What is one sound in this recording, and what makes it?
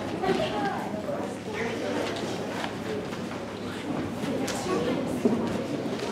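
A young girl speaks quietly into a microphone.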